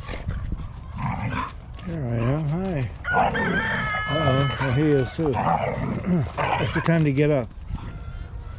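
Dogs growl and whine while playing.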